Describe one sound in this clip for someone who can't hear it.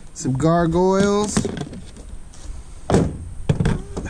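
Stone figures knock down onto a hard plastic surface.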